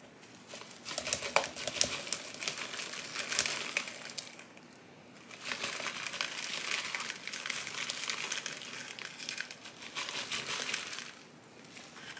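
Fingers press and scrape soil in a pot.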